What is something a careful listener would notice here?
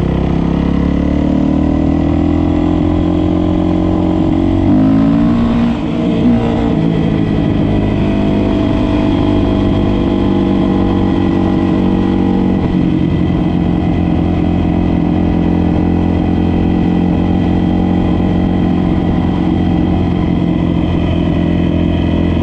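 Wind rushes past in a steady roar.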